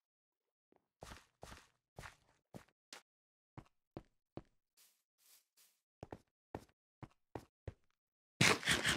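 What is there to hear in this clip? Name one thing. Footsteps crunch over stone and grass.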